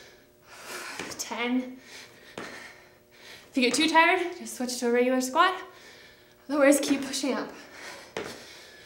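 A young woman speaks breathlessly between exercises.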